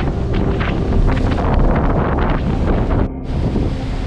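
Foamy water splashes and gurgles right against the microphone.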